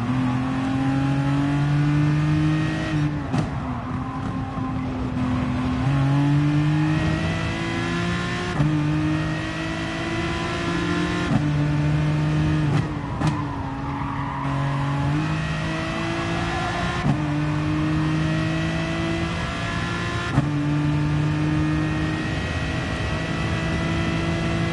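A racing car engine roars loudly, rising in pitch through each gear and dropping sharply at each gear change.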